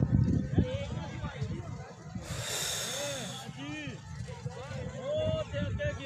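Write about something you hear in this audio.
Young men call out far off across an open field.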